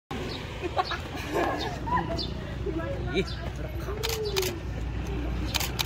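Young girls laugh and chatter close by.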